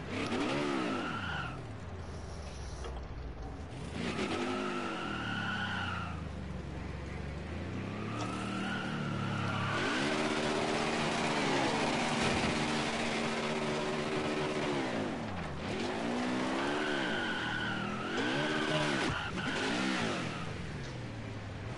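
Tyres screech as a stock car spins and slides in a racing game.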